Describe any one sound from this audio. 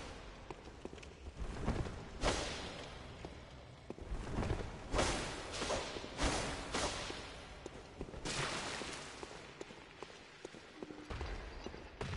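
Footsteps run over stone.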